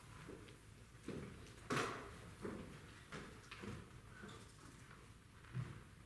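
Footsteps shuffle on a wooden stage.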